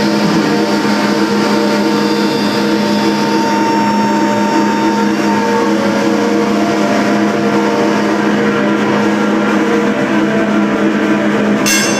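Hand drums are struck in a steady rhythm.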